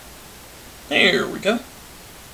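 A young man speaks calmly into a close microphone.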